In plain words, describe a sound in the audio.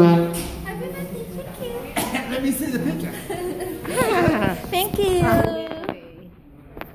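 A saxophone plays a bending melody close by.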